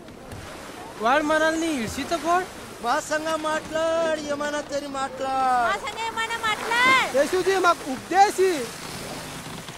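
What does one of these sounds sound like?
A man sings in long, wavering notes nearby.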